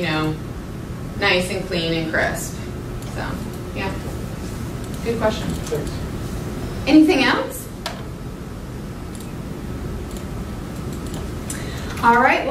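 A young woman speaks calmly, heard from a few metres away.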